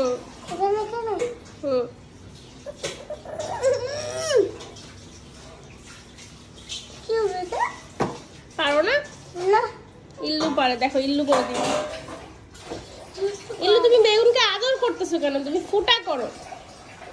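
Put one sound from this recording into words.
A young child talks and babbles close by.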